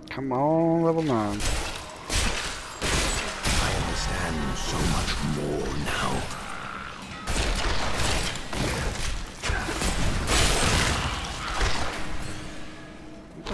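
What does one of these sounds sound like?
Blades clash and strike in a rapid, noisy fight.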